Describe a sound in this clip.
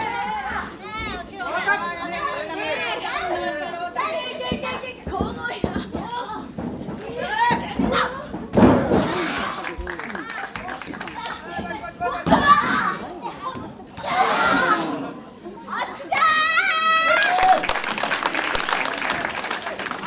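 A crowd cheers and shouts in a large echoing hall.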